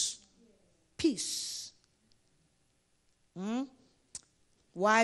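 A woman preaches loudly and forcefully into a microphone in an echoing hall.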